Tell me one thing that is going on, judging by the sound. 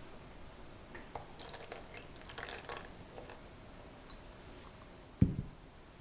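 Milk pours into a pot with a soft splash.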